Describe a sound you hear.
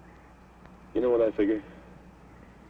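A man speaks a few quick words up close.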